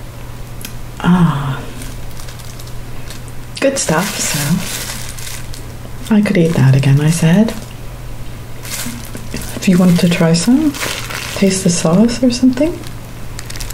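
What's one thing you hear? A woman speaks calmly and close to the microphone.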